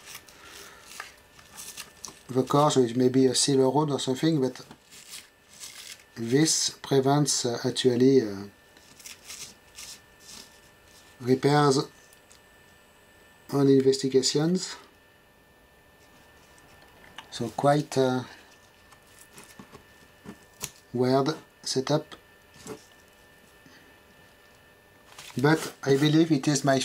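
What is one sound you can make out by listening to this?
Hands brush crumbly foam off a board with a soft rustle.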